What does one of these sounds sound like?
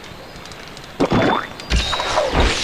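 A sparkling chime rings out as an item is used.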